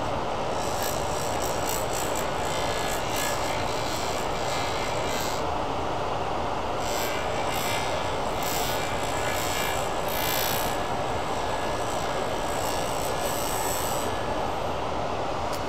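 A stick grinds against a spinning wheel with a rough hiss.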